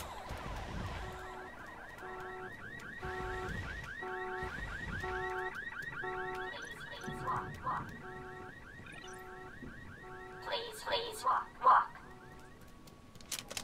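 An electronic alarm beeps in a steady repeating pattern.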